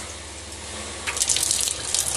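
Water runs from a tap into a metal sink.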